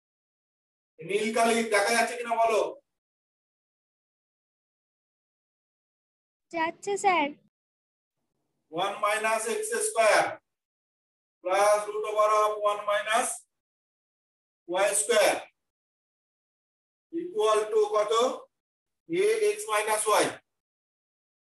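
A man speaks calmly in short phrases with pauses.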